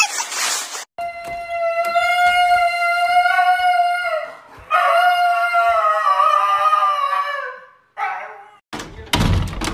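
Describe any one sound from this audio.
A husky howls loudly and long, close by.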